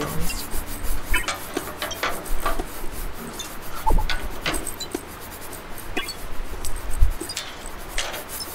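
Metal parts clink and rattle in quick, uneven bursts.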